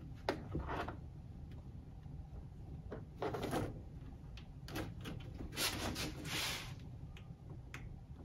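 Plastic track pieces click and scrape as they are pressed into place.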